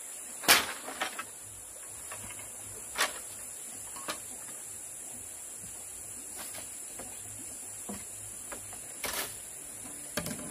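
A blade chops at bamboo with sharp knocks.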